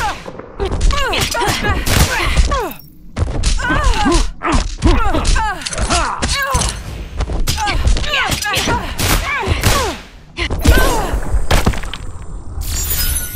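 Punches, blasts and impacts crash rapidly in a fight.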